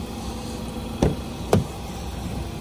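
A car door handle clacks.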